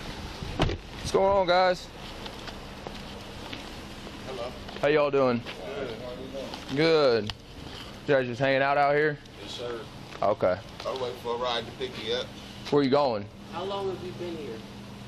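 A man speaks loudly and close by.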